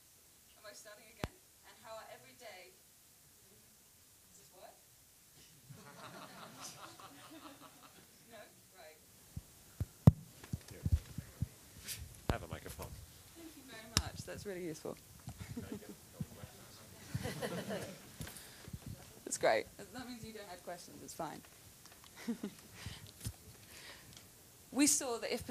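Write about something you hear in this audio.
A young woman speaks with animation into a microphone in a large hall.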